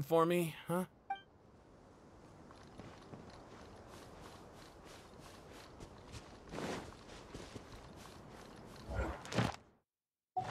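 Footsteps run over sand.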